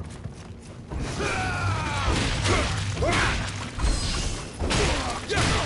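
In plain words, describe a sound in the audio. A sword slashes and strikes with sharp metallic hits.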